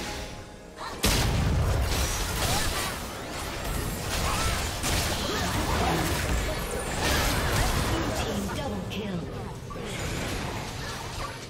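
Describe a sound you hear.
Magic blasts and explosions crash in a fast game battle.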